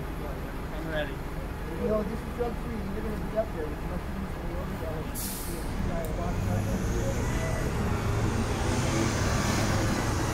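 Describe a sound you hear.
A young man talks casually nearby, outdoors.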